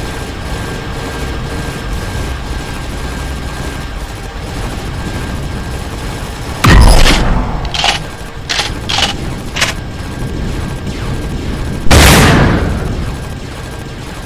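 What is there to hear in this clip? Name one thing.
A spaceship engine hums steadily.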